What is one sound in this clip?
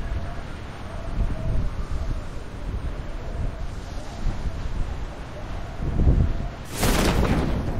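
Wind rushes steadily past a falling skydiver.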